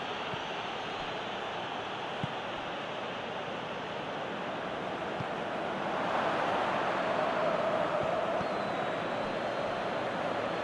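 A stadium crowd roars and swells.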